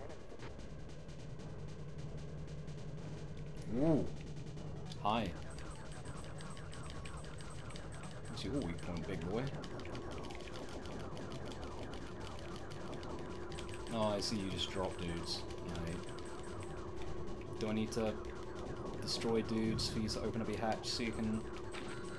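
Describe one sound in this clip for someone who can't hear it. Electronic game music plays steadily.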